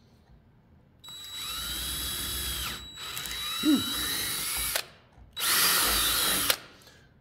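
A small power drill whirs in three short bursts.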